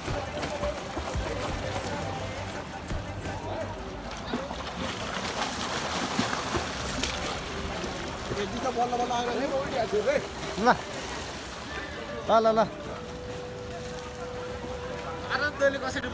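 Swimmers splash while swimming.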